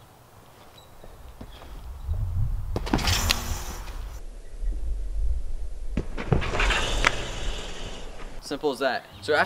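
A trampoline mat thumps and its springs creak as a boy bounces and flips.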